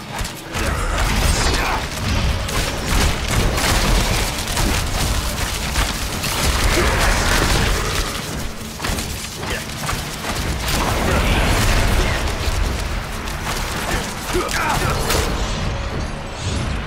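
A deep rumble of battle effects rolls on steadily.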